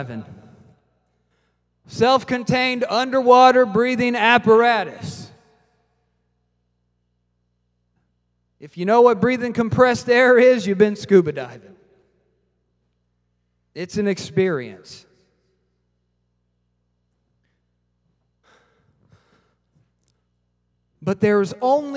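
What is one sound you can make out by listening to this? A man preaches with animation through a microphone, in bursts with pauses.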